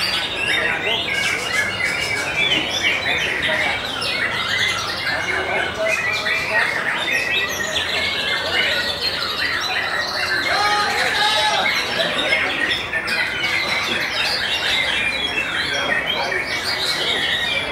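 A songbird sings a fast, varied song of chirps and whistles close by.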